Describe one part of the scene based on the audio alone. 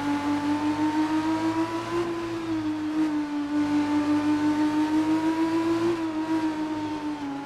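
A racing car engine whines at high revs, dropping briefly with each gear change.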